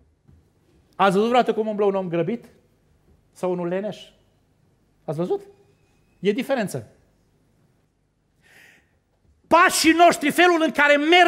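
A middle-aged man preaches with animation into a microphone, in short bursts with pauses.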